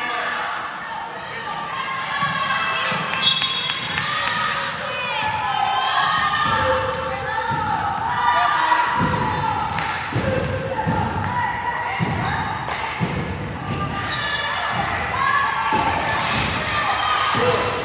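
Sneakers squeak sharply on a hard floor in a large echoing gym.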